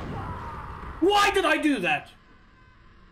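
A man shouts out loudly close to a microphone.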